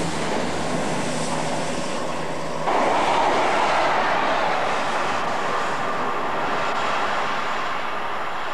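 A train rushes past close by with a loud roar.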